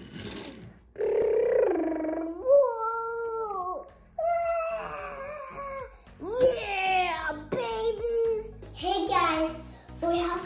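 A young boy talks with animation, close by.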